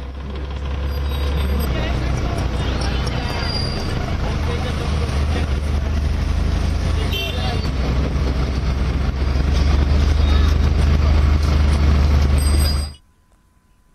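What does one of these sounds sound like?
A crowd of bicycles rolls along a road outdoors with a low rumble.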